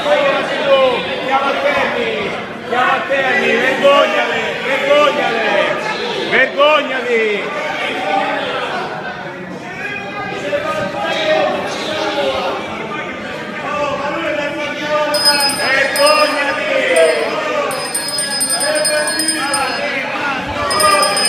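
A crowd of men and women talk and shout over each other in a large echoing hall.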